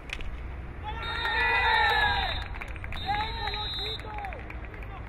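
Spectators cheer and shout nearby.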